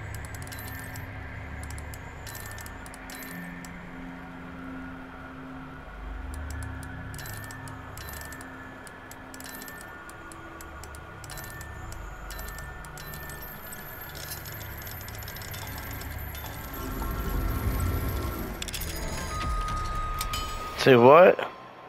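Metal gears click and whir as a dial turns.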